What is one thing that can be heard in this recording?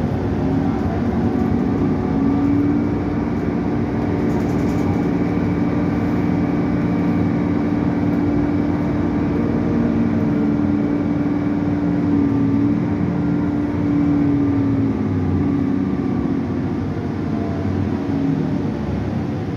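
A bus engine whines, rising and falling in pitch.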